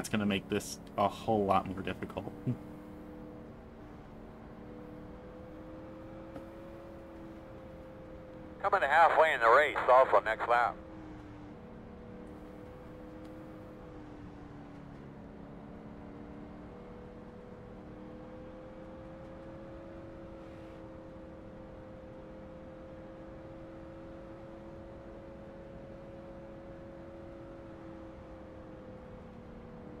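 A race car engine drones steadily, rising and falling slightly in pitch.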